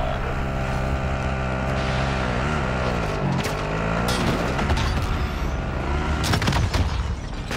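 An off-road buggy engine drives, rising and falling in pitch.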